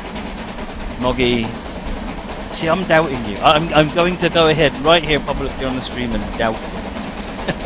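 A middle-aged man talks casually into a close microphone.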